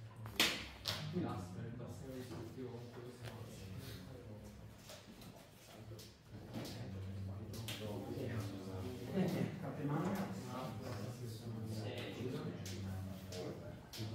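Playing cards slide and tap softly on a mat.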